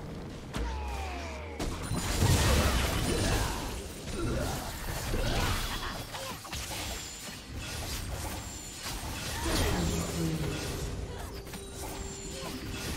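Game spell effects whoosh, crackle and burst during a battle.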